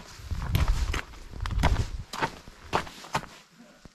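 Dry leaves rustle underfoot.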